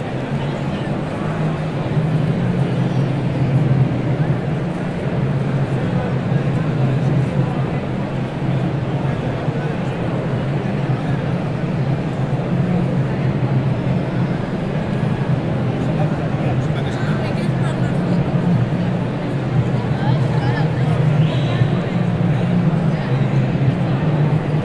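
A large crowd chatters and murmurs steadily in a big echoing hall.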